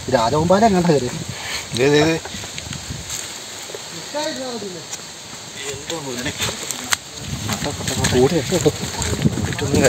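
Footsteps crunch on dry leaves and dirt.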